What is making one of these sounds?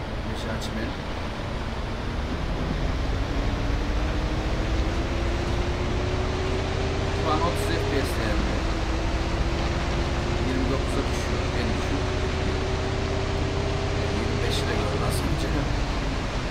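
A bus engine hums and whines higher as it speeds up.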